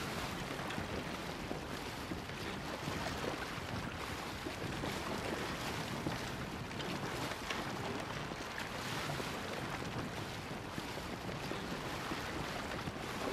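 Water rushes and splashes against a boat's hull as it sails.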